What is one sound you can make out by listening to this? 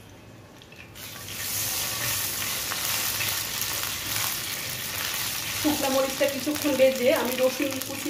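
A spatula scrapes and stirs in a pan.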